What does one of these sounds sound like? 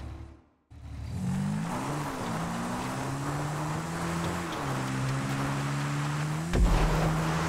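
A single motorbike engine revs and whines.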